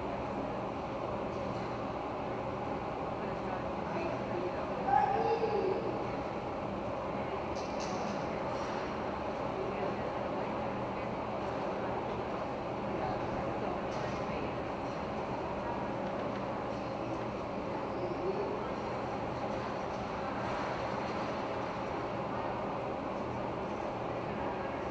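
A few adults chat quietly in the distance.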